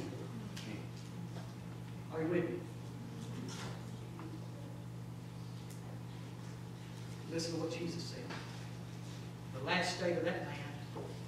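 An elderly man speaks with animation through a microphone in an echoing hall.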